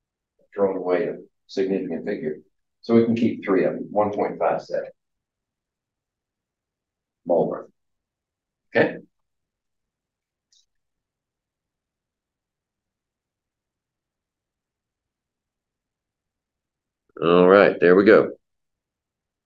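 An elderly man lectures, heard through a microphone.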